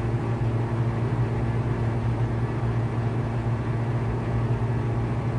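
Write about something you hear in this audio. A small plane's engine drones steadily from inside the cockpit.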